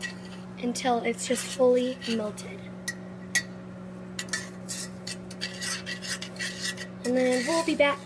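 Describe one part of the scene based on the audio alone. A metal spoon scrapes and clinks against a pot while stirring.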